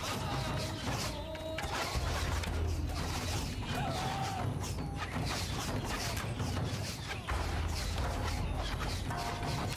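A crossbow fires with a sharp snap.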